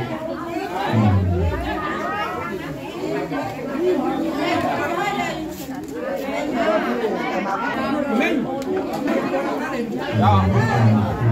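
Several women and men chatter nearby, overlapping one another.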